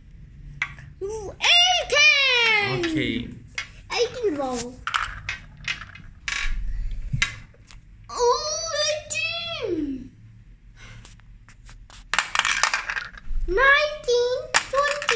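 A young child talks and squeals excitedly close by.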